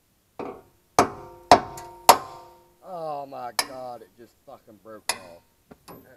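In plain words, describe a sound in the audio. A hammer strikes metal with a sharp ringing clang.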